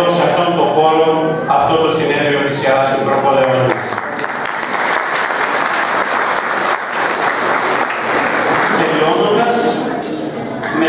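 A middle-aged man speaks steadily into a microphone.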